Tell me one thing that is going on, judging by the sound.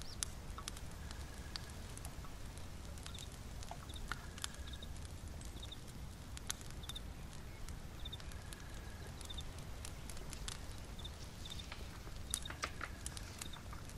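A small fire crackles and pops softly.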